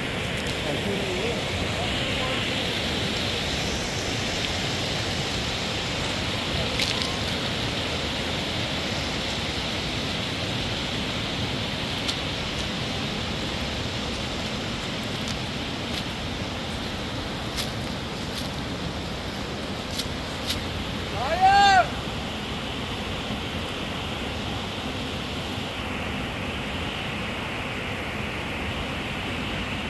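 Footsteps crunch on loose stones as people climb a rocky slope.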